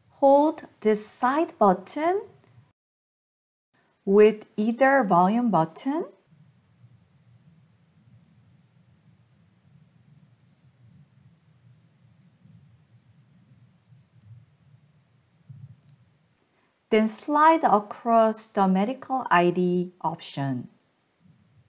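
A young woman speaks calmly and clearly into a close microphone, with pauses.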